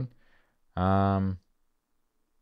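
A man speaks a long drawn-out word close to a microphone.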